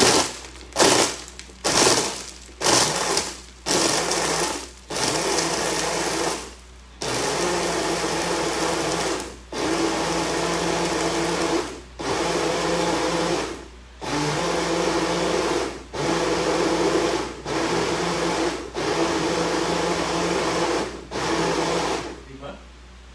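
A blender whirs loudly in short bursts.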